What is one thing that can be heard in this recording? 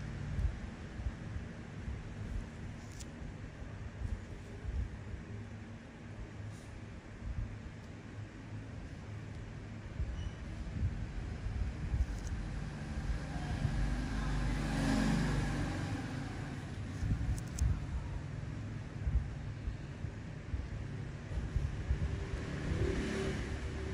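Metal tweezers tap and click softly close by.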